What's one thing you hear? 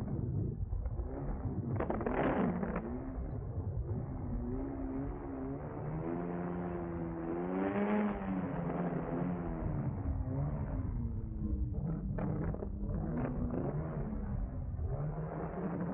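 A small propeller engine drones loudly close by, its pitch rising and falling.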